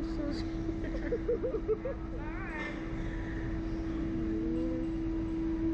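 A young woman laughs and squeals close by.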